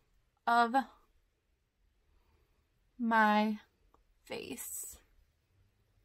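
A young woman speaks softly and close to a microphone, in short phrases.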